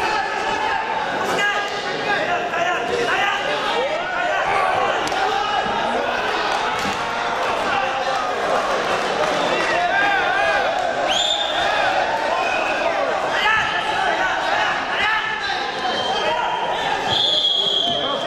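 A crowd in a large echoing hall shouts and cheers throughout.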